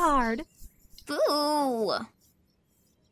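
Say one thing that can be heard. A girl speaks softly and sadly.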